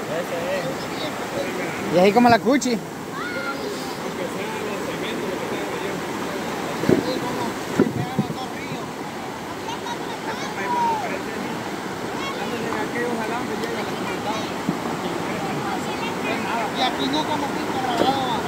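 A river rushes steadily over rocks outdoors.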